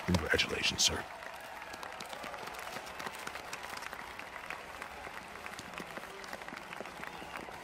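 A crowd applauds steadily in the background.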